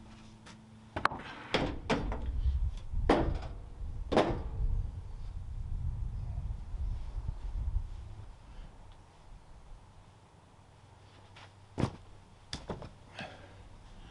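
Wooden boards clatter and knock as they are stacked.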